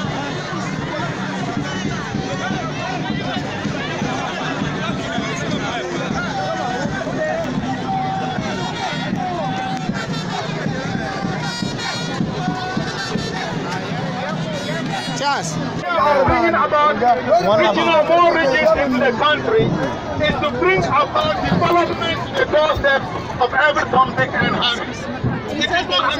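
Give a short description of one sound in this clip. A large outdoor crowd cheers and chants loudly.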